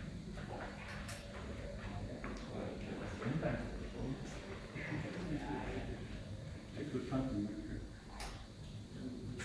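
A man speaks into a microphone, heard through loudspeakers in a reverberant room.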